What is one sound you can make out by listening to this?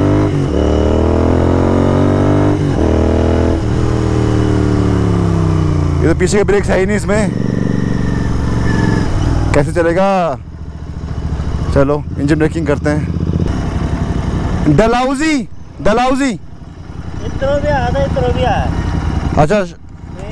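A motorcycle engine hums and revs up close.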